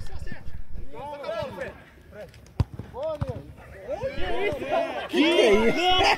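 Men shout excitedly outdoors.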